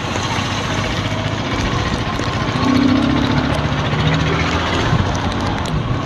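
A small truck engine rumbles close ahead.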